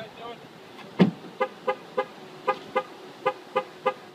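A car horn chirps repeatedly.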